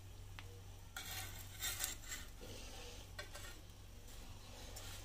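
Metal tongs scrape and clink against a pan.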